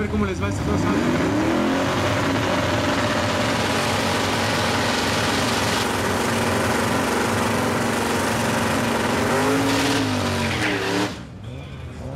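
A truck engine roars at full power.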